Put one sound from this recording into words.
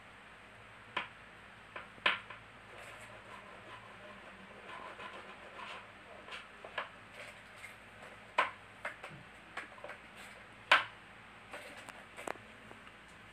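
A toy wand taps and scrapes against a wooden table.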